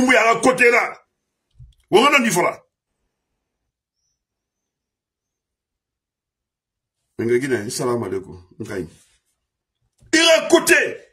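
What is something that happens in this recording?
A middle-aged man speaks forcefully into a close microphone, in short bursts with pauses.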